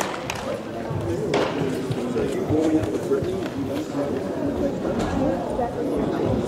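Several men talk in the distance in a large echoing hall.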